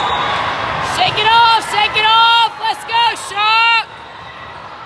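A referee's whistle blows in several short, shrill bursts.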